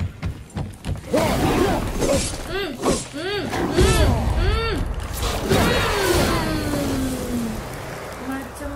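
Heavy blows, clangs and snarls of a fierce fight ring out.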